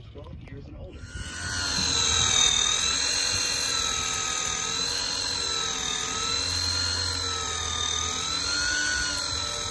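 An electric fishing reel whirs with a wavering hum as it winds in line.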